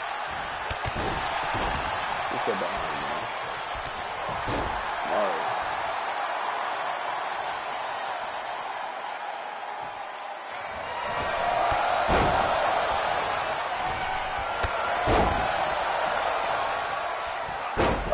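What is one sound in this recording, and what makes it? Heavy thuds of bodies hitting a wrestling ring mat.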